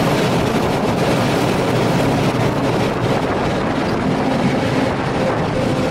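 A train rumbles and rattles loudly along the track at speed.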